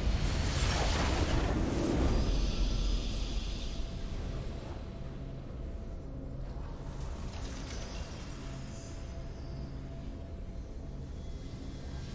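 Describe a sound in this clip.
A triumphant game fanfare plays.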